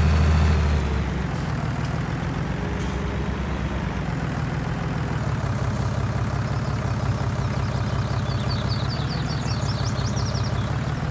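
A tractor engine rumbles steadily as the tractor drives slowly.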